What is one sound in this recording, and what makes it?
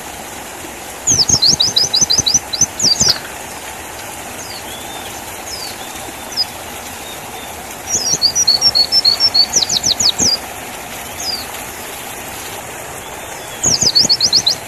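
A small bird sings close by in quick bursts of high, sharp chirps and trills.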